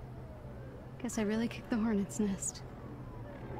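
A young woman speaks in a friendly, calm voice.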